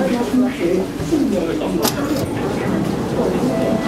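Train doors slide open.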